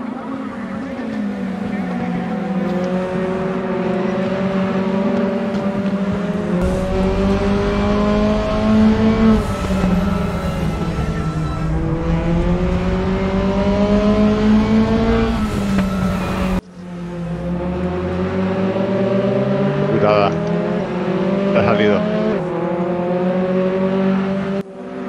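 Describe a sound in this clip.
A racing car engine roars loudly, rising and falling in pitch as it shifts gears.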